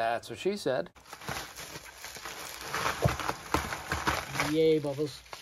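Plastic bubble wrap crinkles and rustles.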